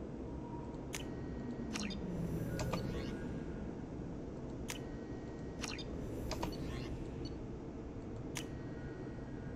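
Short electronic menu chimes click now and then.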